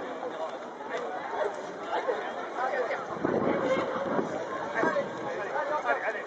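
Water splashes as people swim.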